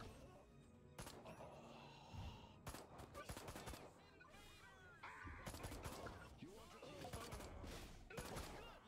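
A ray gun fires crackling energy blasts.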